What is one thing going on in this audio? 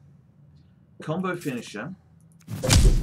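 A man talks close to a microphone with animation.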